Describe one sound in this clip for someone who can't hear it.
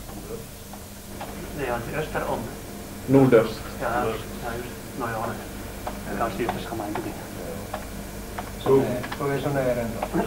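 Fingers tap on computer keyboard keys.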